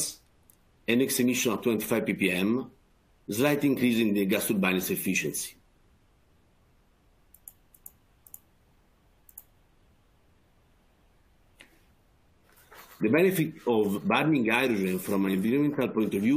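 A middle-aged man speaks calmly over an online call, with pauses.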